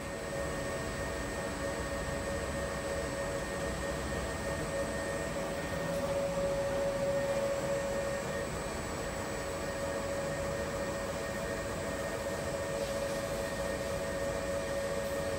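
A commercial front-loading washing machine hums as its drum turns.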